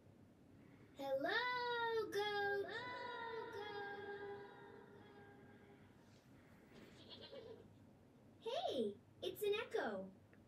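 A young man sings long held notes close by.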